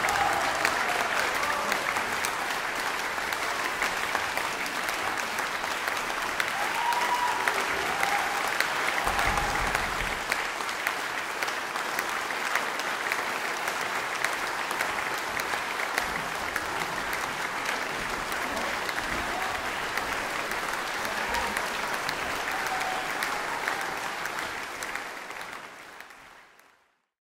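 A large audience applauds loudly in an echoing hall, fading out at the end.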